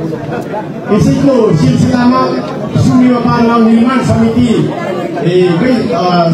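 A man speaks through a microphone and loudspeakers in an echoing hall.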